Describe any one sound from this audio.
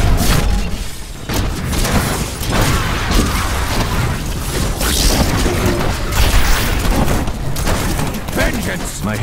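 Video game fire explosions boom and crackle.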